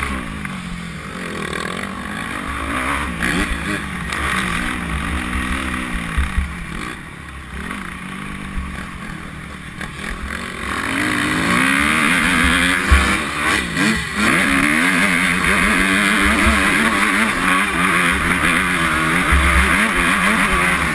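A motorcycle engine revs and whines close by, rising and falling in pitch.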